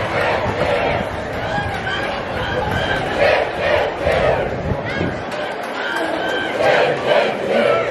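A group of women chant and shout loudly in unison outdoors.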